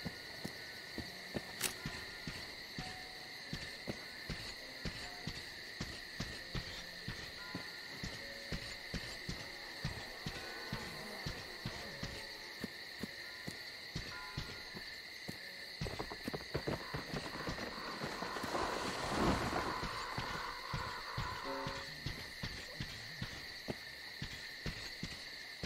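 Footsteps crunch steadily on the ground.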